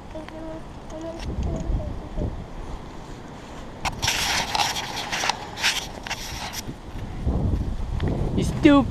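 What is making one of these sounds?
A kite's fabric flaps and rustles in the wind.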